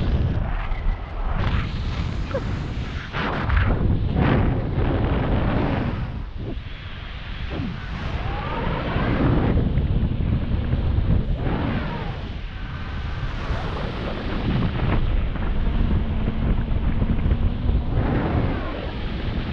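Strong wind rushes and buffets loudly outdoors high in the air.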